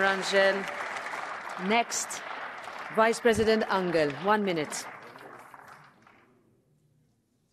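A crowd applauds in a large hall and the applause fades away.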